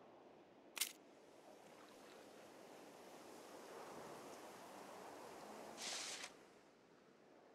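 Water rushes softly in the distance outdoors.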